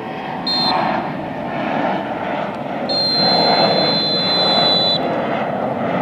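A referee's whistle blows sharply, twice.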